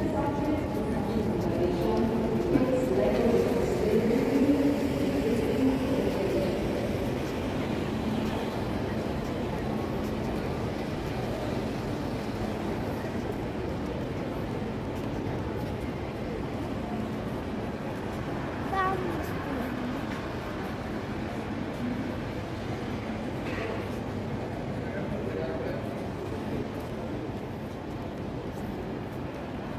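A large echoing hall hums with a steady murmur of distant voices.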